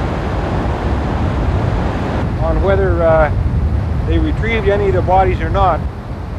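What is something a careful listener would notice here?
Wind gusts outdoors, rumbling low and steadily.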